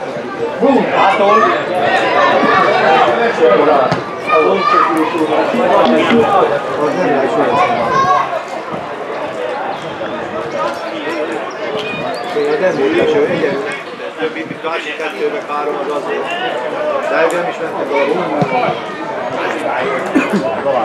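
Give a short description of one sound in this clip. A football is kicked on a grass pitch with a dull thud.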